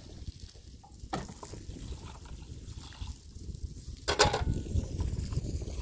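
Water splashes as it is poured into a plastic basin.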